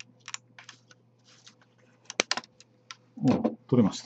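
Stiff plastic crinkles and clicks under gloved hands.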